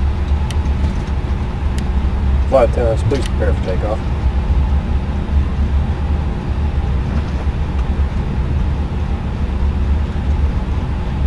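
Jet engines rumble with a steady low hum.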